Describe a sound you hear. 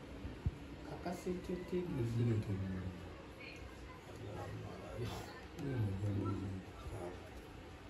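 A young man talks quietly nearby.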